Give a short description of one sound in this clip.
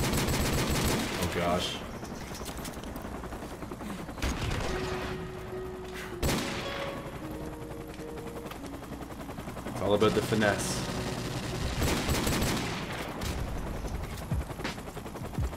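Gunshots bang sharply several times.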